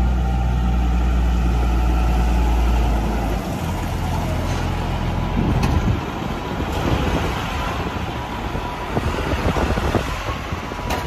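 Tractor tyres crunch over a wet concrete yard.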